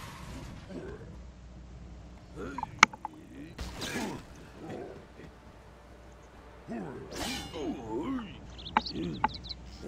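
A man talks in a playful, exaggerated character voice close to a microphone.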